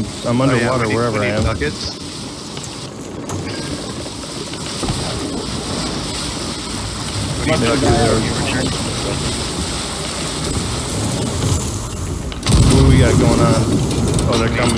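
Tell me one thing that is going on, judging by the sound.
Rough sea waves surge and crash steadily.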